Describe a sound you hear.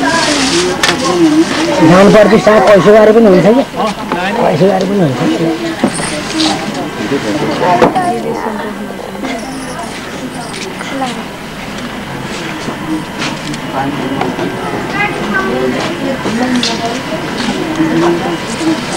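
Several men and women talk and murmur close by in a crowd, outdoors.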